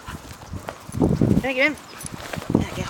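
A dog whines briefly.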